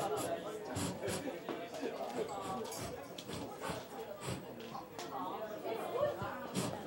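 A crowd of diners chatters loudly in a busy room.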